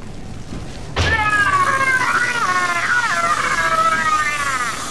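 A burst of roaring fire flares up suddenly.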